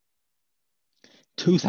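An elderly man speaks briefly over an online call.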